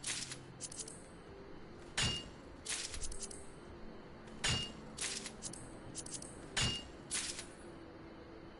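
Sharp metallic strikes ring out with bright chimes, like a pickaxe gathering ore in a game.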